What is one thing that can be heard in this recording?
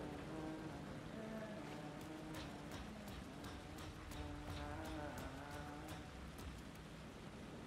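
Footsteps splash on wet pavement.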